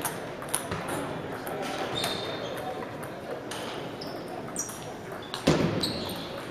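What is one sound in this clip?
A table tennis ball bounces on a table.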